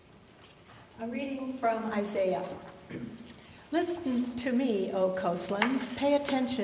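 An elderly woman reads out calmly through a microphone.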